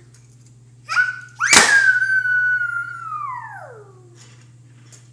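A young child squeals loudly and excitedly close by.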